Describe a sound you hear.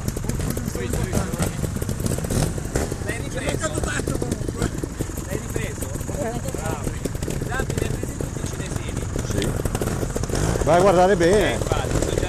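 A trials motorbike engine idles and revs nearby.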